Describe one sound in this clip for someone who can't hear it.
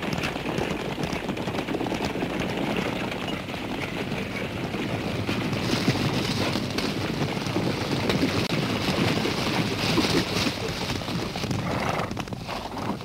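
Many horses gallop, their hooves drumming on dry ground.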